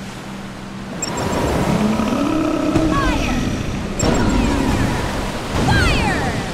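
Water splashes against a moving boat.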